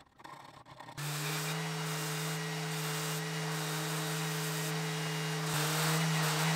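An electric sander hums steadily.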